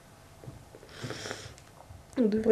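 A young woman sniffles.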